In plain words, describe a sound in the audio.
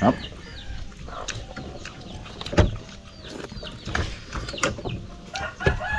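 A young man chews food with his mouth full.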